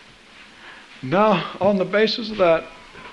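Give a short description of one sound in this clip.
A man sings in a clear, sustained voice.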